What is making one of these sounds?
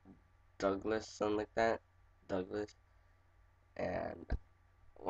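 A teenage boy talks casually, close to a microphone.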